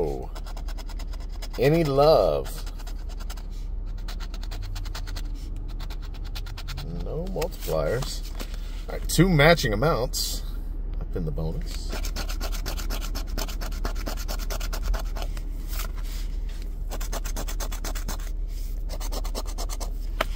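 A plastic scraper scratches rapidly across a card.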